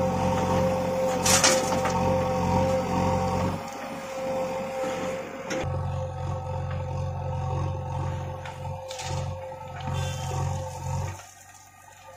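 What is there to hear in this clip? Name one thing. Dirt and stones thud and rattle into a metal trailer bed.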